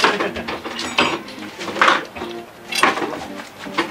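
A metal curtain rail clatters as it is taken down.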